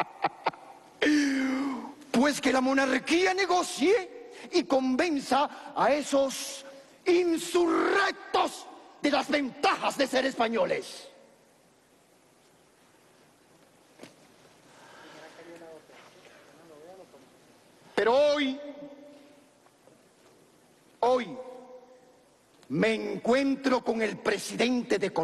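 A man declaims loudly and dramatically, heard through a microphone.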